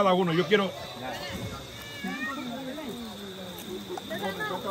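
Other men talk in the background outdoors.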